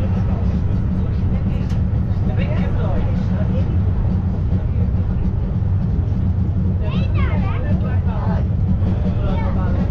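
A train rumbles steadily along its track, heard from an open carriage.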